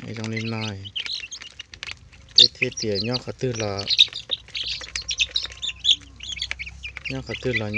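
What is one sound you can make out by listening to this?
Chicks cheep and peep continuously close by.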